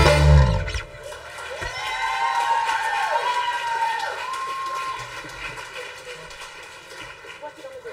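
A saxophone plays a smooth melody.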